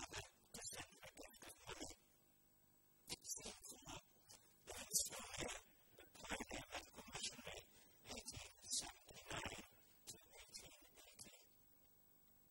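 An elderly man reads aloud calmly into a microphone in an echoing hall.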